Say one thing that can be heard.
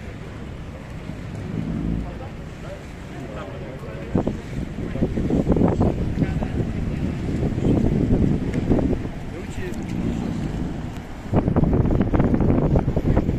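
Wind rumbles across open water.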